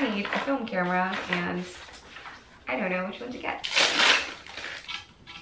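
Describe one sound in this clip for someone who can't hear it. Paper crinkles as a young woman handles an instruction sheet.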